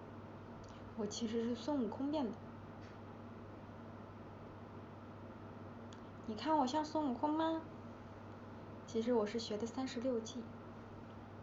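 A young woman speaks calmly and softly into a nearby microphone, in short bursts.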